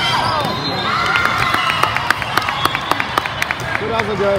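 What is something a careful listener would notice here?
Young women shout and cheer in a large echoing hall.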